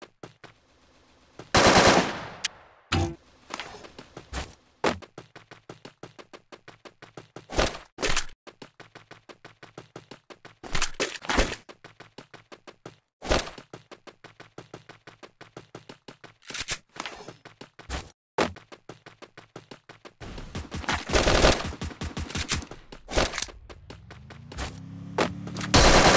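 Footsteps patter quickly as a game character runs.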